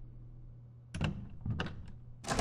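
A door latch clicks and rattles.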